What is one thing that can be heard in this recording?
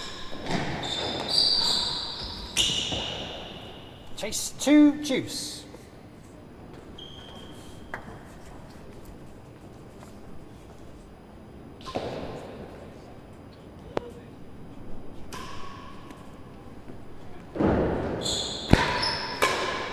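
Rackets strike a ball with sharp smacks in a large echoing hall.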